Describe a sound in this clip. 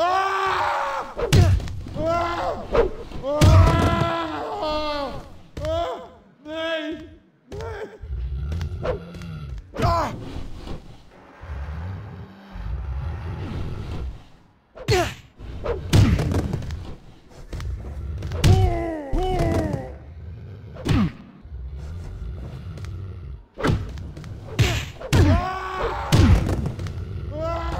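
Fists thud in heavy punches.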